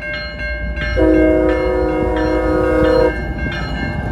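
A train horn blasts loudly in a long chord.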